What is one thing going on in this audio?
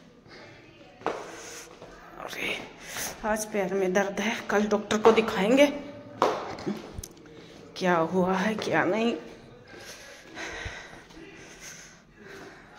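Footsteps tread slowly down hard stairs.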